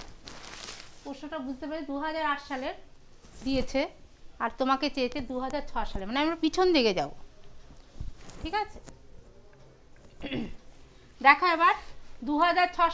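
A woman talks calmly and clearly, close by.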